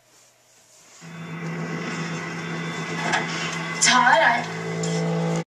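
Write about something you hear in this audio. A steady, low electronic alert tone buzzes through a television speaker.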